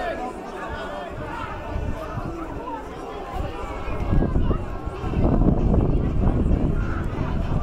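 A crowd of spectators shouts and cheers outdoors.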